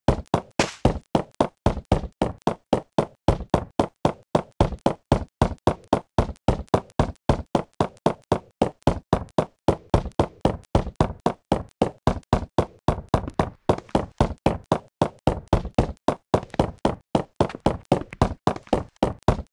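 Stone blocks break with quick, steady, repeated cracking knocks.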